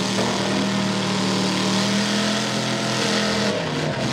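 Mud splatters and sprays from spinning tyres.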